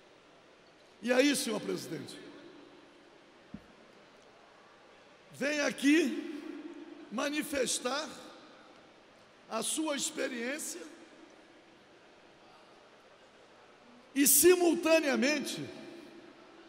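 An elderly man speaks with emphasis into a microphone, in bursts with pauses, in an echoing hall.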